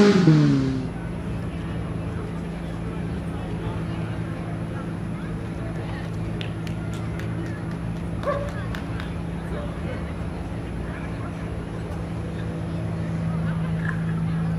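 A rally car's engine idles.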